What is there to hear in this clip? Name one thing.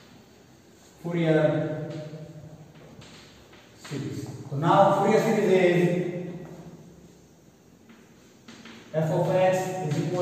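A man speaks clearly and steadily, as if explaining.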